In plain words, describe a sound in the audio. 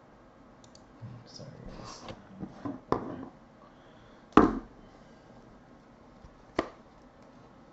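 Trading cards rustle and slap as a man shuffles through them.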